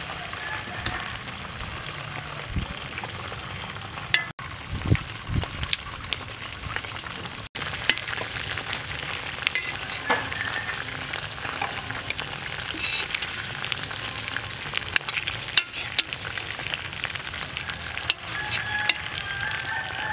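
Metal tongs clink against a plate and a pot.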